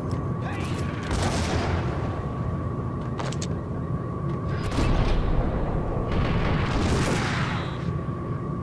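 Gunshots ring out, with loud blasts echoing through a large hall.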